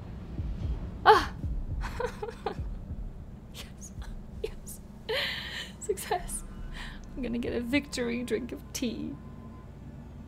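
A young woman talks and laughs close to a headset microphone.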